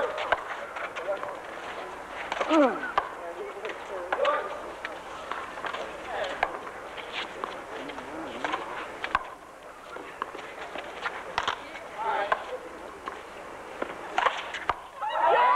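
A rubber ball smacks sharply against a concrete wall again and again.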